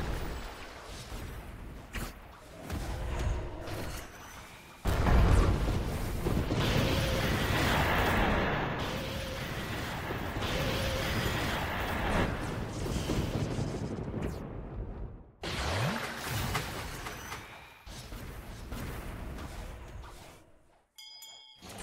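Magic attacks blast and whoosh repeatedly.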